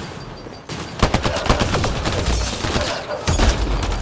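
A gun fires in rapid bursts of shots.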